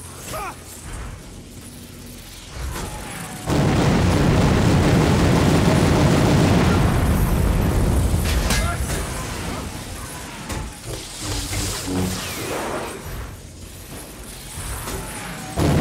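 Electricity crackles and buzzes in sharp bursts.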